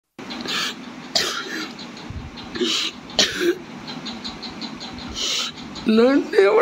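A middle-aged man sobs and gasps, heard over a phone call.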